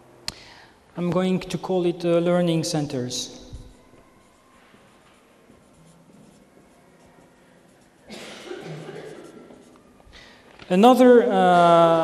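A man speaks to a room, heard through a microphone.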